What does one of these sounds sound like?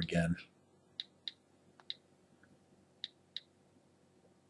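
A device's keypad clicks softly as keys are tapped.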